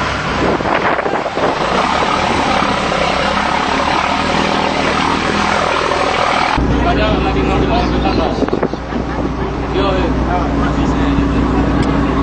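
A ship's engine hums low and steady.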